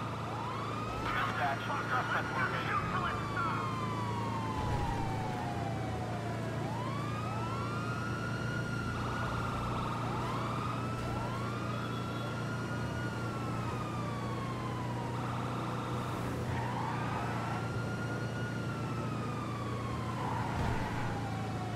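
A heavy truck engine hums steadily as it drives.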